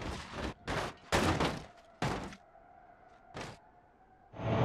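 Metal crunches and clatters as a car's body is bent.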